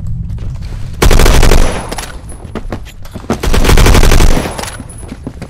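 Gunfire rattles in loud rapid bursts.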